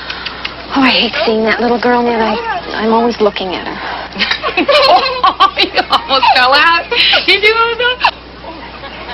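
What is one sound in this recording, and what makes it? A woman speaks in an upset voice nearby.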